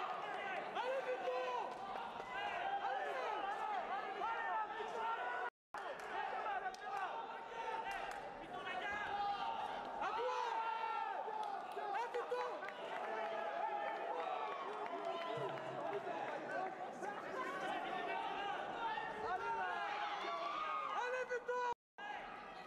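A ringside crowd shouts and cheers in an echoing hall.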